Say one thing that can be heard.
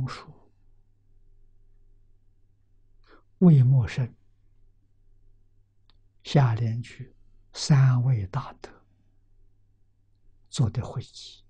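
An elderly man speaks calmly and slowly into a close microphone, with pauses between phrases.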